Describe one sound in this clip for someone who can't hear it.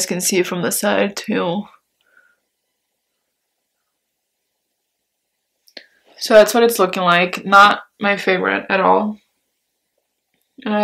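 A young woman talks calmly and close to a microphone, with pauses.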